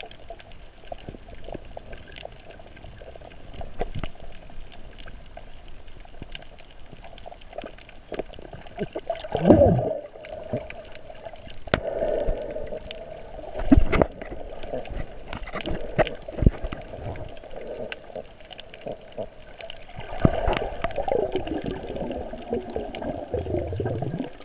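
Muffled water swishes and gurgles, heard underwater.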